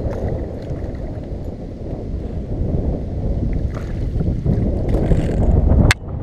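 A fish splashes and thrashes at the water's surface close by.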